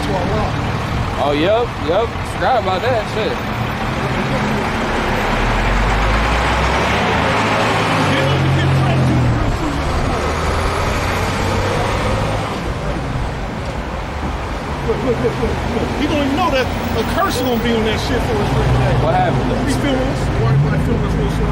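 A bearded man speaks with animation close by.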